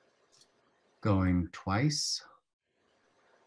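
A man speaks a few loud words through an online call.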